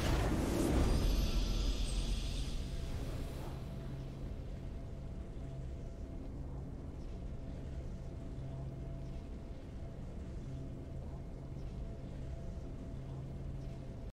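A triumphant victory fanfare plays and then settles into a soft, steady musical tone.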